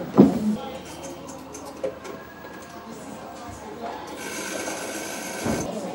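A small television plays with a voice through its speaker.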